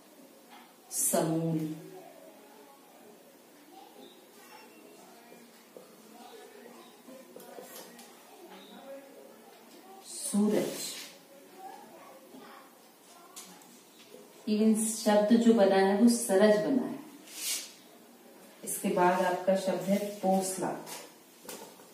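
A young woman explains calmly, close by.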